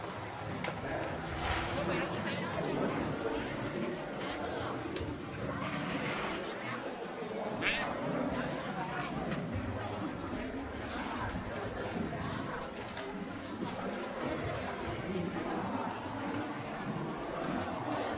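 A crowd of people chatter all around outdoors.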